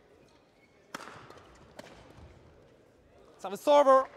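Rackets strike a shuttlecock with sharp pops in an echoing hall.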